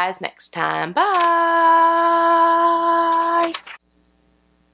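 A young woman sings out a long, held note.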